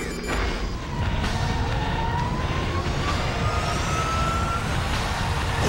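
A jet engine whines and rises in pitch as an aircraft lifts off.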